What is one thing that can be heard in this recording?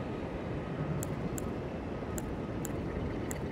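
Short, bright menu blips tick now and then as a selection moves.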